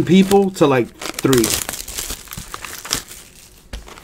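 Plastic wrapping crinkles and tears as a box is opened.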